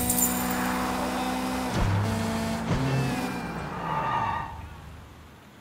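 A car engine revs and roars.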